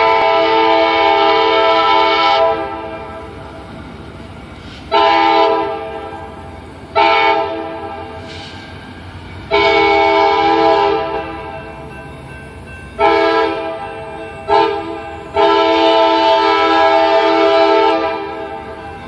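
A train horn blares loudly in long and short blasts.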